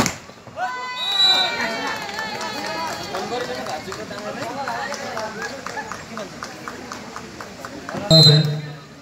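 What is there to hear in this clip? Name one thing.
A crowd of spectators cheers and shouts in the distance.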